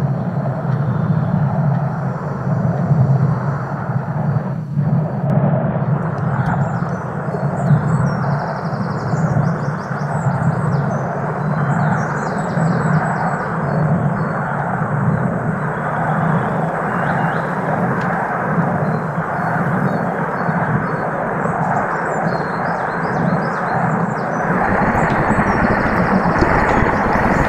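A glass bowl rolls over dirt with a steady rumble.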